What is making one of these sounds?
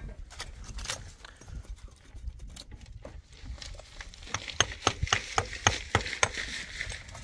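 A trowel scrapes wet cement against stone.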